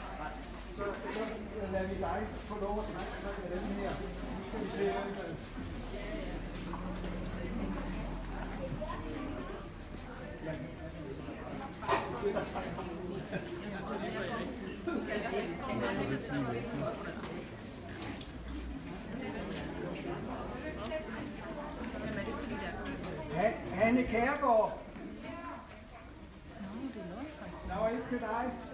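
A crowd of adults murmurs and chatters nearby.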